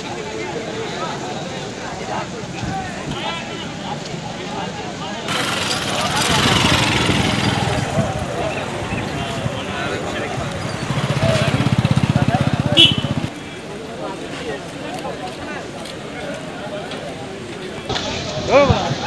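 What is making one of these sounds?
A crowd of men talks and murmurs outdoors.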